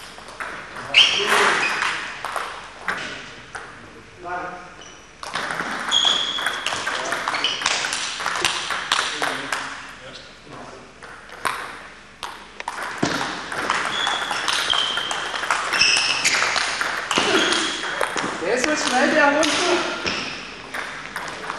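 A table tennis ball clicks back and forth across a table, echoing in a large hall.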